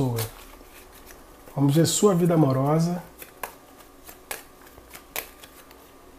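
Playing cards riffle and rustle as they are shuffled.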